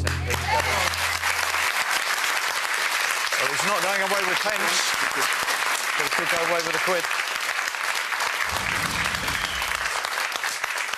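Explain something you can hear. A studio audience claps and cheers loudly.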